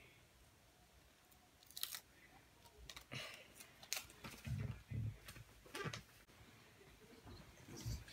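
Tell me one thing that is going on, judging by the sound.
Paper rustles and crinkles in a girl's hands.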